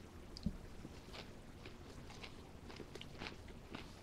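Paper crinkles as it is handled.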